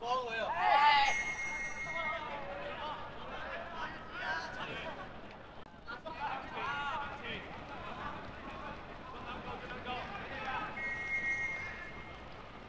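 A referee's whistle blows short sharp blasts.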